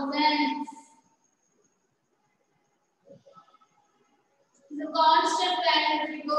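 A woman speaks clearly, as if teaching, close by.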